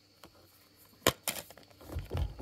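A plastic game case clicks open.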